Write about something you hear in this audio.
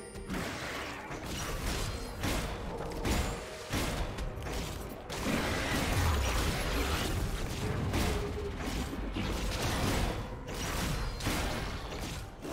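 Game sound effects burst with loud hits and blasts.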